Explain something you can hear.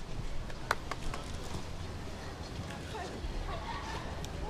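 Young women call out cheerfully through microphones outdoors.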